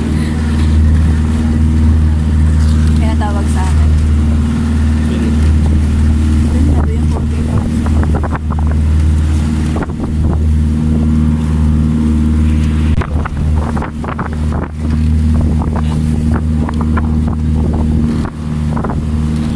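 A boat engine drones steadily and low.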